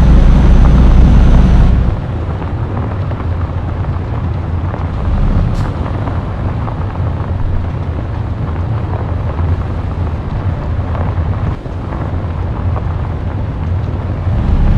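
A diesel truck engine drones as the truck drives.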